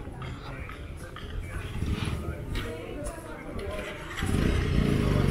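A motorcycle engine rumbles steadily nearby, growing louder toward the end.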